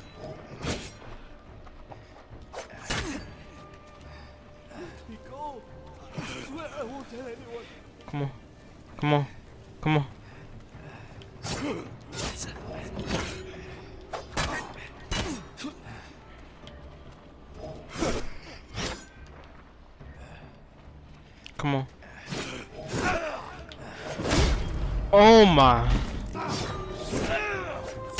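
Swords clash and slash in sharp, quick strikes.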